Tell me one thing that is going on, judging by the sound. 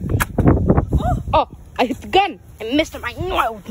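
A young boy shouts and squeals playfully close by.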